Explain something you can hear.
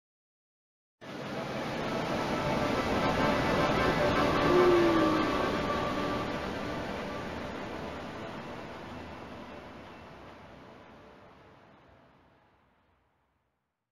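A sparkling game jingle swells and slowly fades away.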